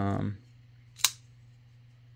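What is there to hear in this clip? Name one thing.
A folding knife blade snaps open with a sharp click.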